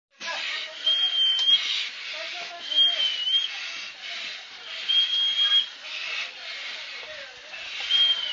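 A firefighter breathes heavily through a breathing mask, each breath a loud hiss.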